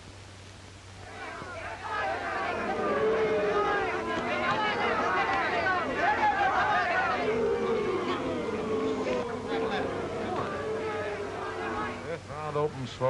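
A large crowd cheers and shouts loudly in an echoing hall.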